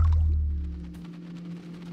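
Water drips and splashes lightly into a river.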